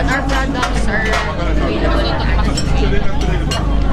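Serving tongs clink against a plate.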